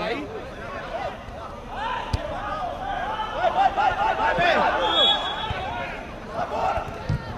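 Men shout and call out across an outdoor pitch.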